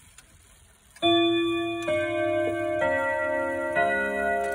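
Clock chime rods ring out a loud, ringing melody.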